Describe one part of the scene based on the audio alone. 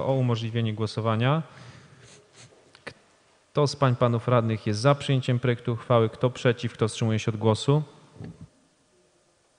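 A man speaks calmly through a microphone in a large room.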